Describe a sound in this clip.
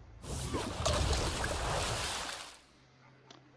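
A game sound effect whooshes and crackles.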